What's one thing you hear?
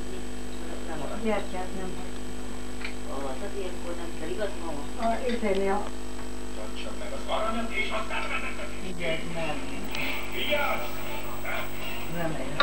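Several women talk and chatter nearby, in a small room.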